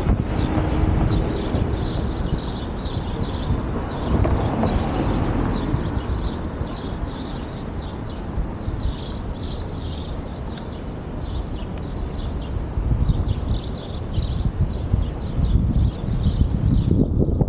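A car drives along a city street with a steady road hum.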